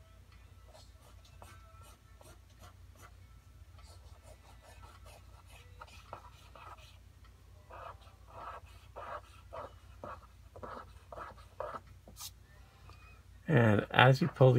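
A pen scratches softly in short strokes on paper.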